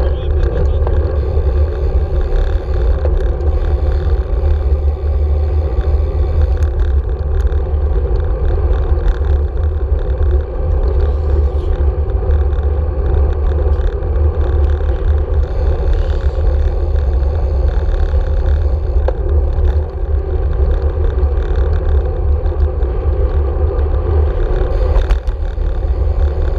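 Bicycle tyres hum steadily on a paved road.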